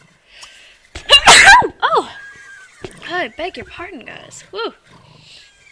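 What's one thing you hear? A horse whinnies loudly.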